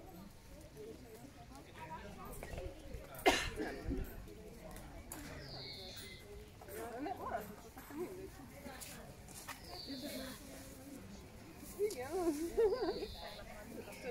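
A young woman talks quietly nearby.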